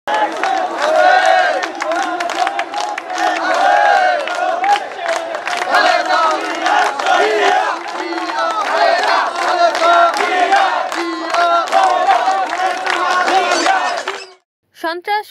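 Men clap their hands in rhythm.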